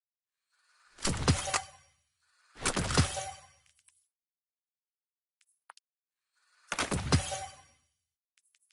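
Short whooshing sounds swell as menu panels open.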